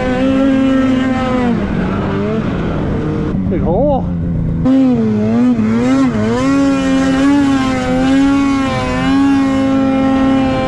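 A snowmobile engine whines loudly up close, its pitch rising and falling as it revs.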